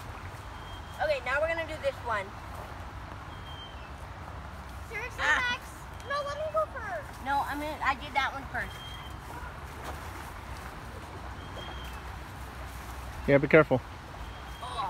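Children talk and call out with animation outdoors.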